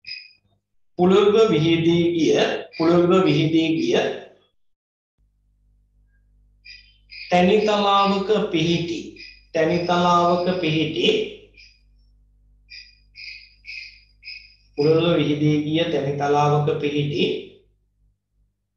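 A man speaks calmly and close by, in bursts with pauses.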